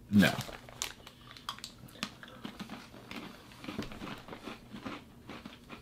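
A woman crunches a snack.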